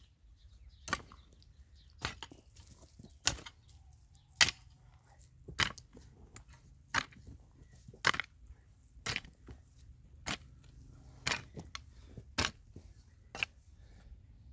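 A hoe strikes the soil in a steady rhythm.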